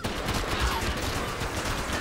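A man screams loudly.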